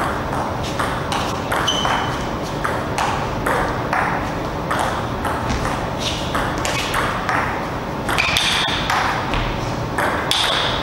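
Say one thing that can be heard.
A ping pong ball clicks back and forth on paddles and a table in a quick rally.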